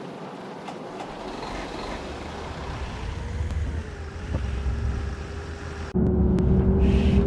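A bus engine hums low and rises as the bus pulls away.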